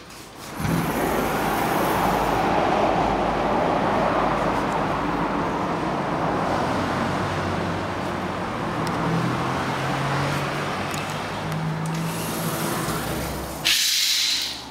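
Wind rushes steadily outdoors, then stops.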